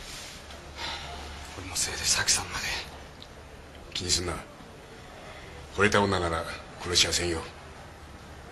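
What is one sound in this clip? A middle-aged man speaks gruffly, close by.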